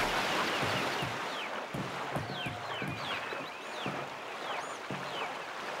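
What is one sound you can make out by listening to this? A paddle splashes through water in quick, regular strokes.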